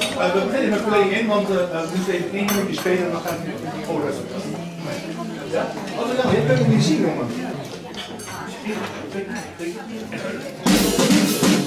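A man speaks calmly into a microphone to an audience.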